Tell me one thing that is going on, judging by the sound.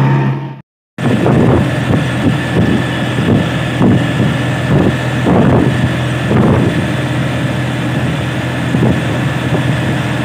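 A motor rickshaw engine hums and rattles steadily from inside the cab.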